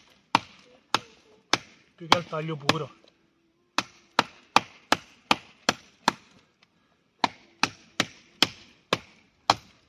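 A hatchet chops into wood with sharp, repeated knocks.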